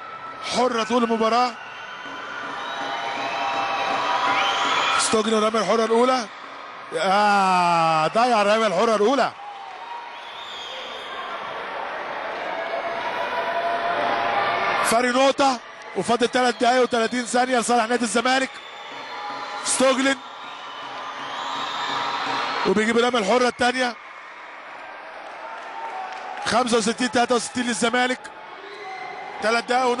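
A crowd chants loudly in a large echoing hall.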